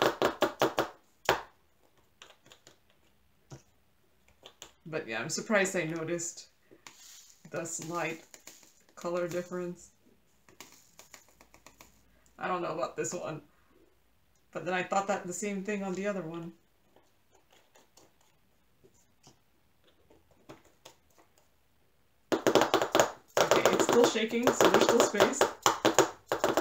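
Small beads rattle and clatter in plastic containers.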